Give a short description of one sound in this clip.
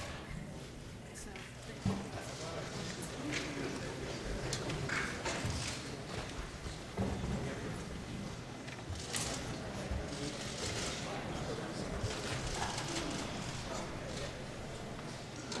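A crowd of men murmurs and chatters nearby.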